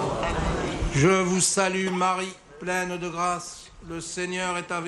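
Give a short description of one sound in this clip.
A man chants in a steady, sung voice through a microphone.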